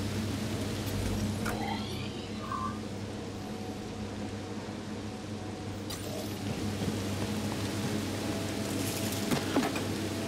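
Heavy machinery hums steadily.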